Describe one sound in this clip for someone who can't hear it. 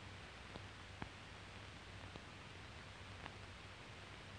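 Checker pieces click on a wooden board.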